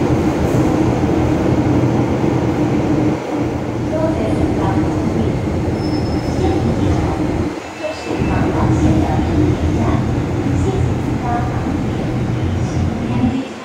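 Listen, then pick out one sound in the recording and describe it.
A subway train rumbles and rattles loudly as it runs along the tracks.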